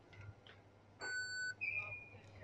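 A checkout terminal beeps as a card is tapped.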